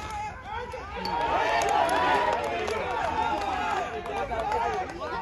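A crowd of young men cheers and yells loudly.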